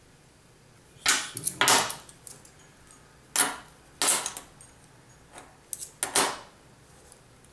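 Metal coins clink sharply as they are set down on a wooden table.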